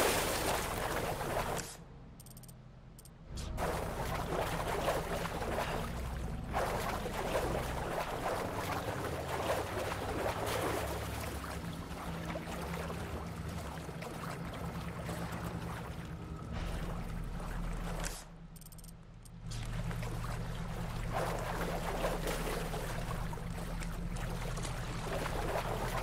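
Feet wade and splash through shallow water.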